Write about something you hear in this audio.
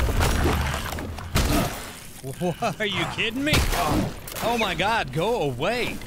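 Blades swing and strike in a fight.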